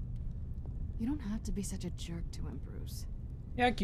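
A young woman speaks with an annoyed tone.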